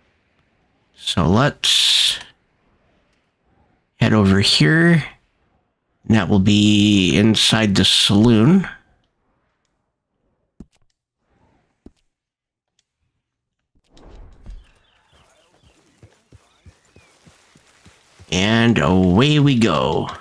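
A man talks calmly and close to a microphone, in bursts with pauses.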